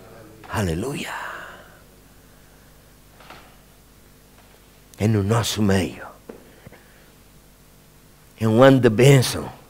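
A middle-aged man speaks with emphasis through a microphone, in short bursts with pauses, in a large echoing hall.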